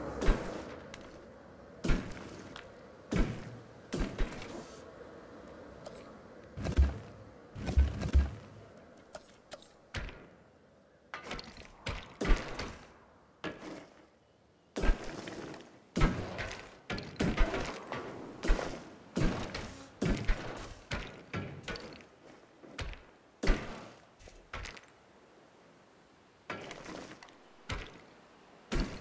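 Short clicks and thuds sound as building pieces snap into place.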